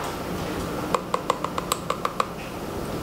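A measuring spoon clinks against a plastic container.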